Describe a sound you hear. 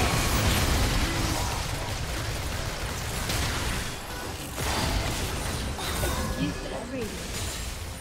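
Game spells and attacks crackle and boom in a busy fight.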